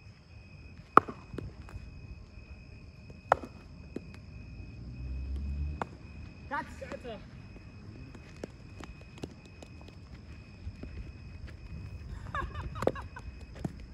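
A cricket bat sharply cracks against a ball.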